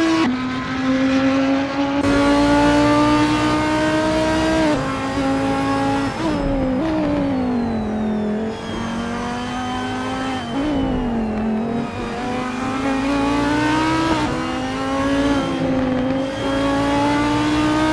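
A race car engine roars loudly, its pitch rising through the gears and dropping as it shifts and brakes.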